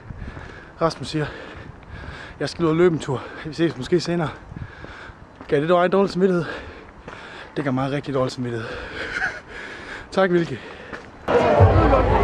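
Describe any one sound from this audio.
A young man talks close up outdoors.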